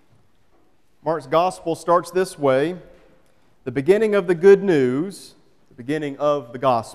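A man reads aloud calmly through a microphone in a large echoing room.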